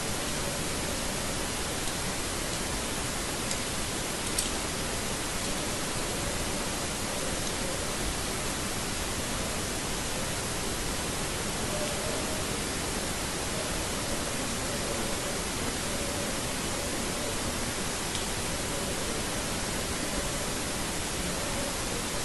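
A blade scrapes and shaves thin curls from a bar of soap, close up.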